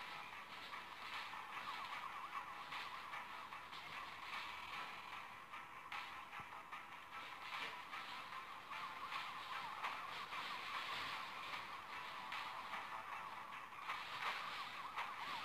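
A game's police sirens wail and warble throughout.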